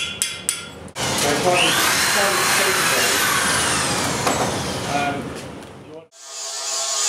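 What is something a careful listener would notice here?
An angle grinder whines as it grinds stone.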